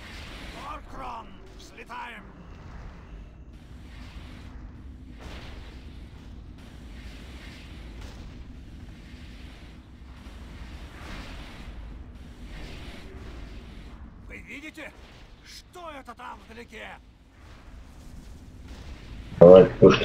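Magic spells whoosh and crackle in bursts.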